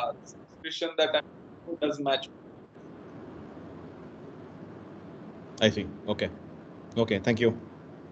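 A man speaks calmly through a microphone on an online call, pausing between phrases.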